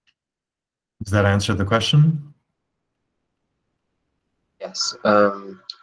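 A man speaks calmly over an online call, in short bursts with pauses.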